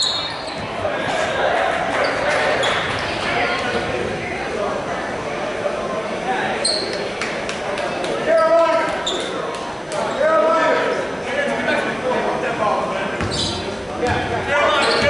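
A crowd of spectators murmurs and calls out in an echoing gym.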